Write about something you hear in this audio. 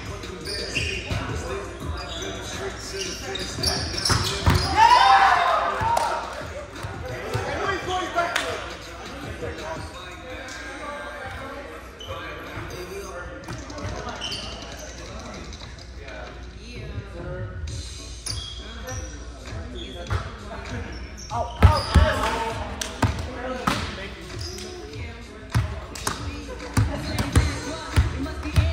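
A volleyball is hit with sharp slaps in a large echoing gym.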